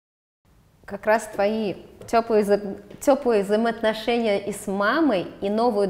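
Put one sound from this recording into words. A young woman talks with animation, close by.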